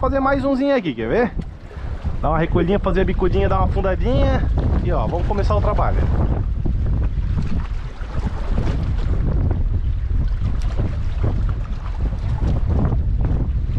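Water laps against rocks.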